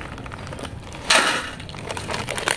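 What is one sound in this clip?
Crisps clatter onto a metal plate.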